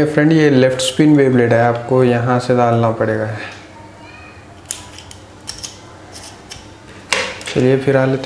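Plastic parts click and clack as they are fitted together by hand.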